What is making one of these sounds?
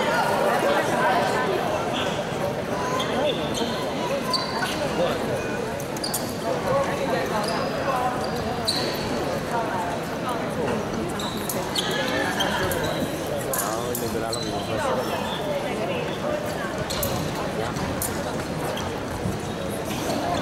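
Steel fencing blades clink and scrape together.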